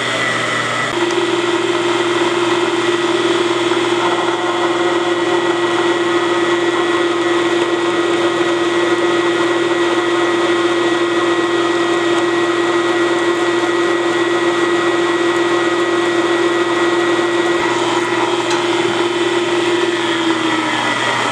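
A drill bit grinds and squeals as it bores into metal.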